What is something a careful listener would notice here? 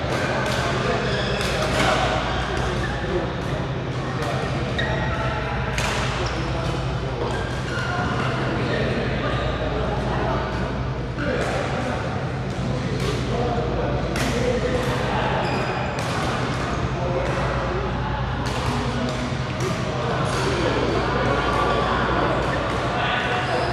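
Several people talk and call out in the background.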